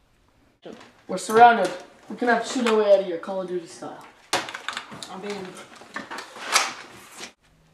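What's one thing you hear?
A boy talks and exclaims indoors close by.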